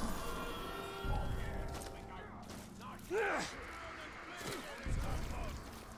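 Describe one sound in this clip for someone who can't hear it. Heavy thuds sound as a figure leaps and lands on rooftops.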